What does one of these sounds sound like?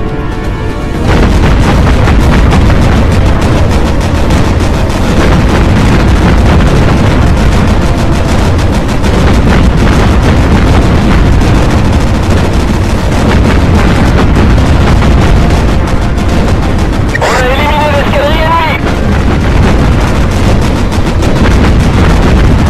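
Anti-aircraft guns fire in rapid, steady bursts.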